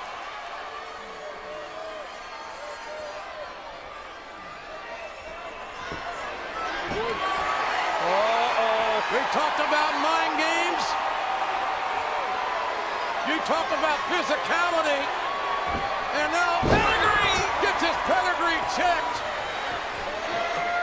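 A large crowd cheers and roars in a big echoing arena, growing louder.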